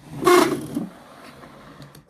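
A finger spins a small toy truck wheel, which whirs softly.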